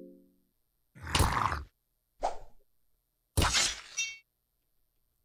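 Sharp game hit sounds crash during a battle.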